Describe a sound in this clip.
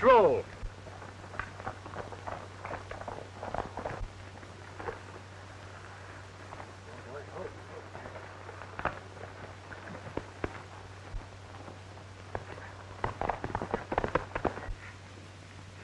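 Horse hooves clop and thud on dirt.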